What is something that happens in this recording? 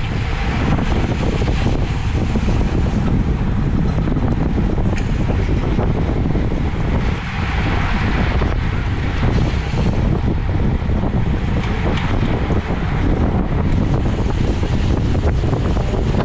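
Strong wind rushes and buffets loudly against the microphone.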